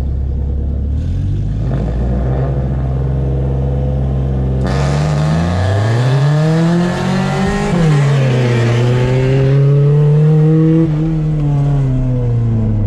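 A car engine revs up and down as the car drives off and turns.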